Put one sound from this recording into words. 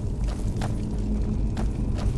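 A fire crackles in a brazier.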